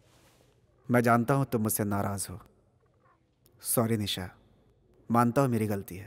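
A man speaks calmly in a low voice nearby.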